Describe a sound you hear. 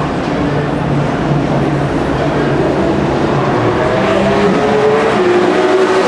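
Flat-six Porsche racing cars roar as they accelerate past on a track.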